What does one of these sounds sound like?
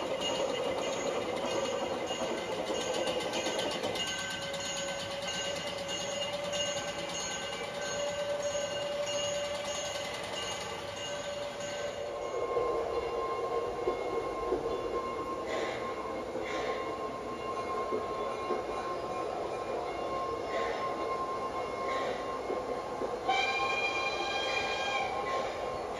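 A model train rumbles and clicks along its track.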